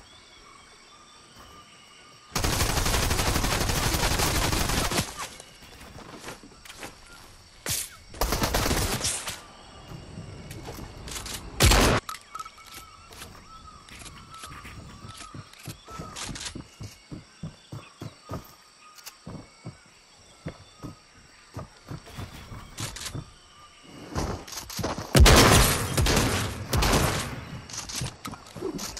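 A game character's pickaxe thuds and knocks against wooden walls.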